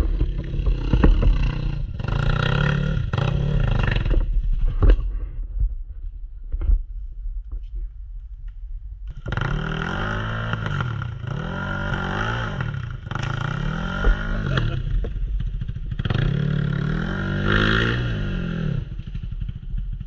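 A dirt bike engine revs up and down nearby.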